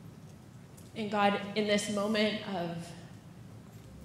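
A woman speaks emotionally into a microphone, heard through loudspeakers.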